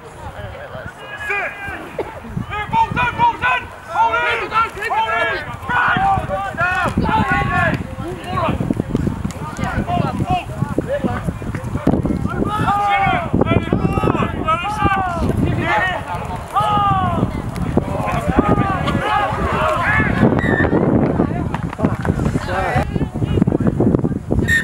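Young children chatter and shout excitedly close by, outdoors.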